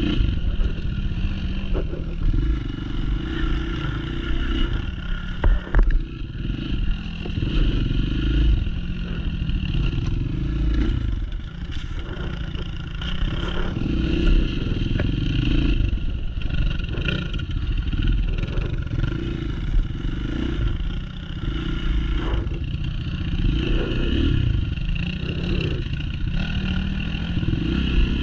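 Another dirt bike engine buzzes a little way ahead.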